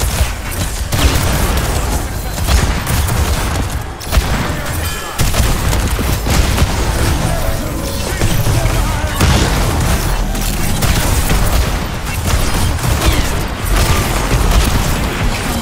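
Gunfire and energy blasts crackle and boom in rapid bursts.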